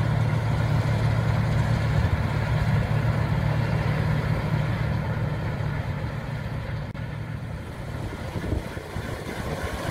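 A combine harvester's engine drones steadily as the machine approaches.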